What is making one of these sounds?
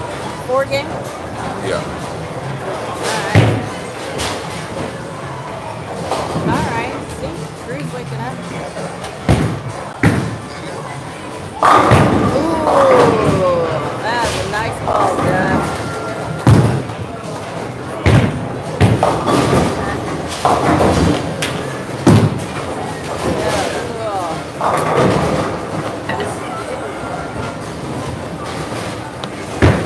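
Bowling balls rumble along lanes in a large echoing hall.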